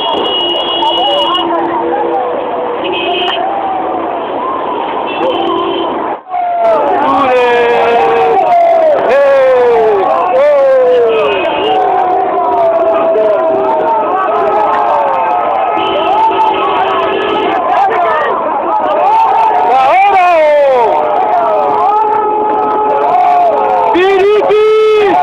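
Car horns honk repeatedly in long blasts.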